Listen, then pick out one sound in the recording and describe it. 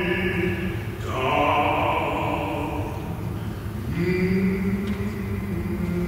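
A man sings in a deep, full voice with long held notes in a reverberant hall.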